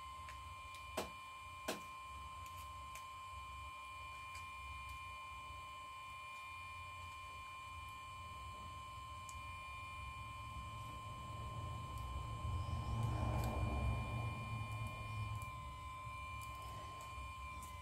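A plastic pry tool clicks and scrapes against a phone's metal frame.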